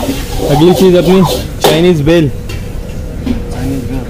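Oil sizzles in a hot wok.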